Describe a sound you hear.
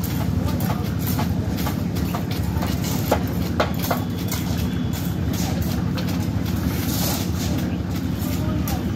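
Trowels scrape and slap across wet concrete.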